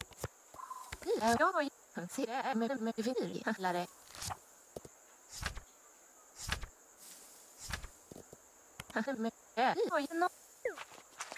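Quick chirpy synthetic babbling tones play in bursts.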